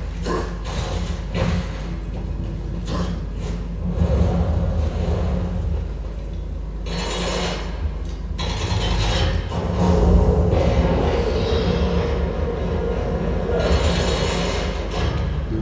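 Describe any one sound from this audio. Heavy armoured footsteps thud and clank on stone.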